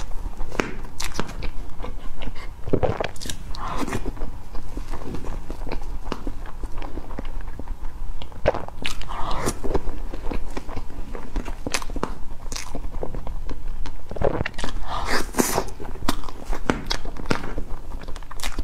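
A young woman chews soft cake wetly and close to a microphone.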